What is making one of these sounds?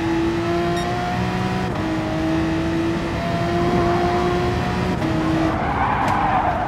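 A racing car engine whines at high revs, shifting up through the gears.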